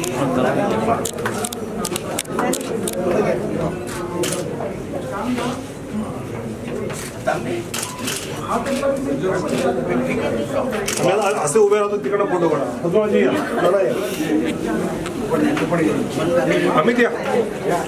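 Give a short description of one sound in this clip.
A crowd of men and women chatter close by in a room.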